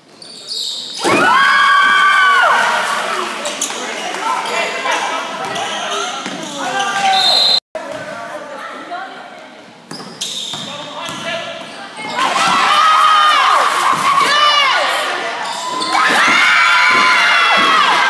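A crowd of spectators cheers and shouts in an echoing gym.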